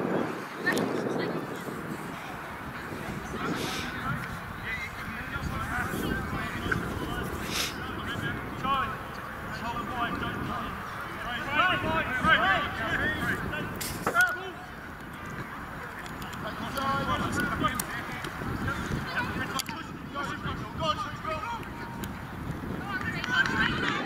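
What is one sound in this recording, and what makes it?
A crowd of men and women shout and cheer from a distance outdoors.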